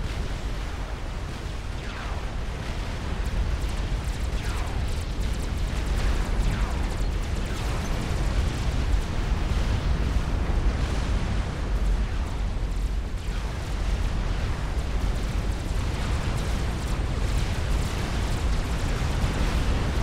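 Explosions boom and rumble without pause in a large battle.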